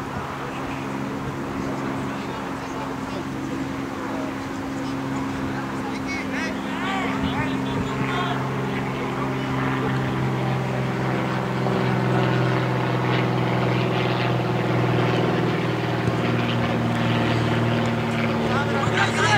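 Men shout to each other across an open field in the distance.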